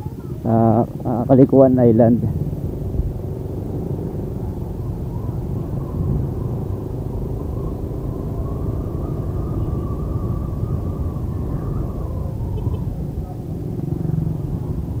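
A motorcycle engine rumbles steadily close by.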